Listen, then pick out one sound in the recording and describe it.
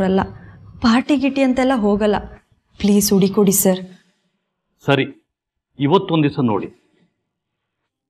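A young woman speaks pleadingly, close by.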